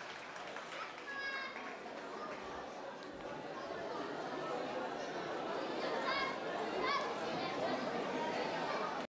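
Children's voices chatter and call out nearby.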